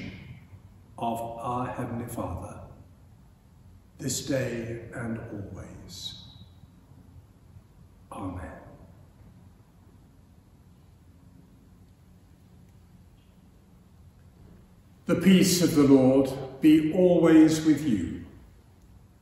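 An elderly man speaks slowly and solemnly, close by.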